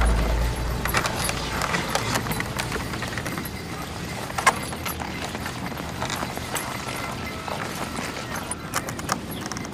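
A horse's hooves thud softly in snow.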